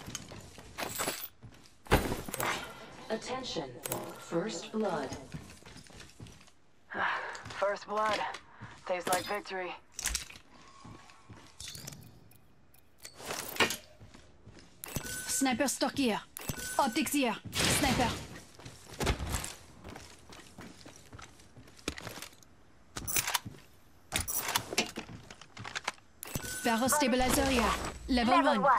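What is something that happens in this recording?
Footsteps clatter on a metal floor.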